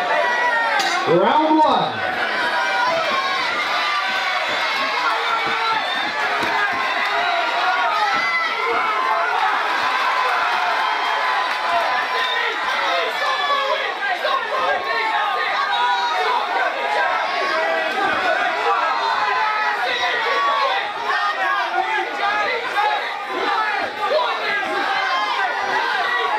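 A large crowd shouts and cheers loudly throughout.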